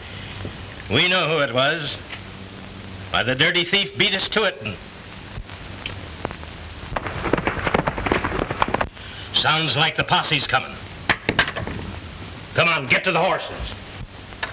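A middle-aged man talks into a telephone with animation.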